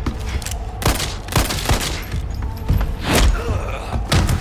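A pistol fires loudly several times.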